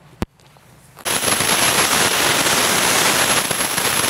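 Water sprays hard from a hose nozzle onto the ground.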